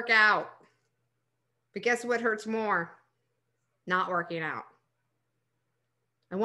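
A woman speaks calmly and closely into a microphone, in short phrases with pauses.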